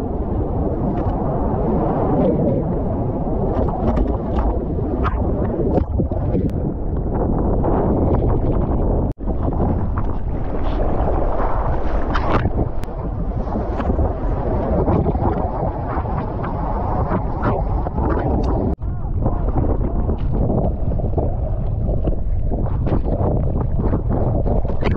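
Choppy sea water sloshes and splashes close by.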